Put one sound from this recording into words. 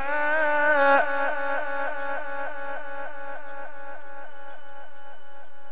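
A loud echo rings on after the man's chanting and slowly fades.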